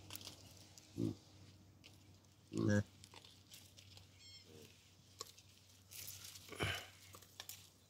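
A baboon grunts nearby.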